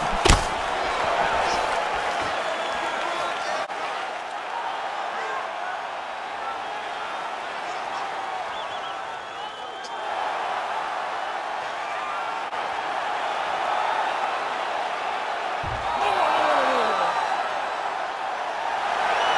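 A crowd roars steadily in a large arena.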